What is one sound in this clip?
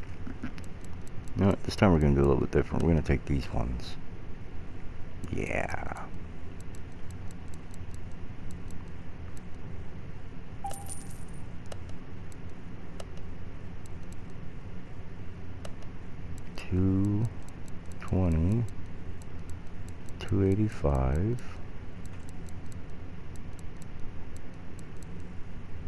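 Soft electronic menu clicks tick now and then.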